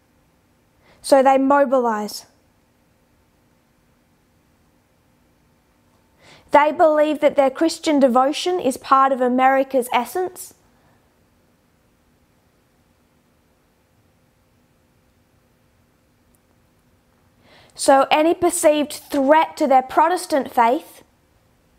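A woman speaks calmly and clearly into a close microphone, in short bursts with pauses.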